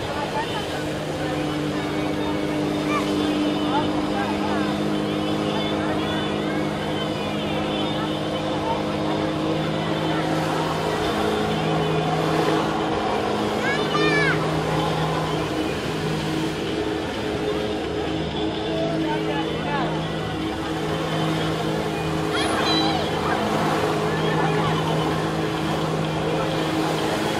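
Water jets from a flyboard roar and splash onto the sea.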